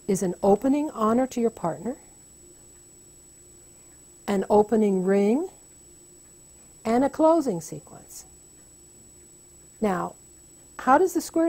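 An elderly woman speaks calmly and thoughtfully into a close microphone, pausing between phrases.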